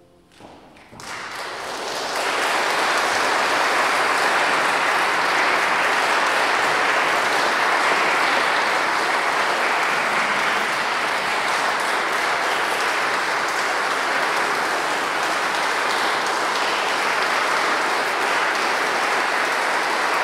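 A man claps his hands in steady applause.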